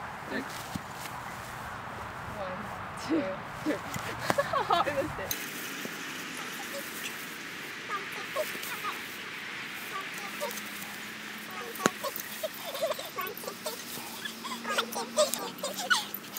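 Plastic bats clatter as they fall onto grass.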